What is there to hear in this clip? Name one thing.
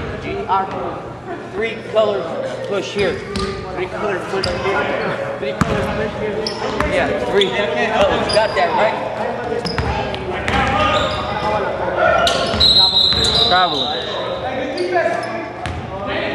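A basketball bounces on the floor, echoing in a large hall.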